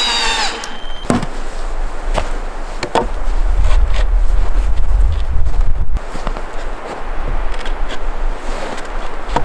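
A wooden pole thuds into packed snow.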